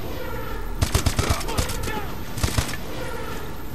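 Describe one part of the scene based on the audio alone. A rifle fires several rapid shots.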